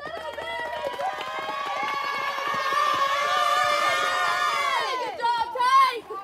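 Young women chant together in a sing-song rhythm.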